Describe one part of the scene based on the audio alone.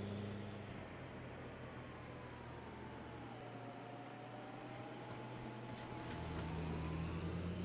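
A tractor engine hums steadily, rising and falling in pitch.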